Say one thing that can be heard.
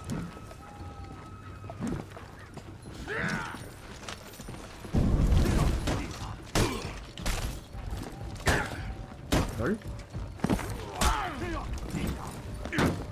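A young man speaks with animation into a close microphone.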